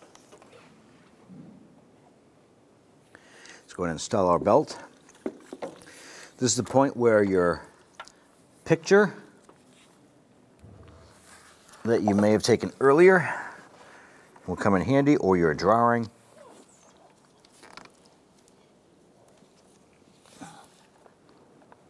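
A rubber drive belt slides and rubs over metal pulleys.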